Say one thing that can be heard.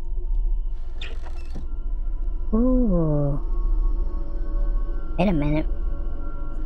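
A heavy wooden crate lid creaks and scrapes open.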